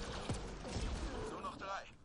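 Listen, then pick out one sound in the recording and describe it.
An explosion bursts with a crackle.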